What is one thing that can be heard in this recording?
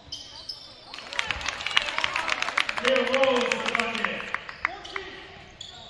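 A crowd cheers and claps in an echoing gym.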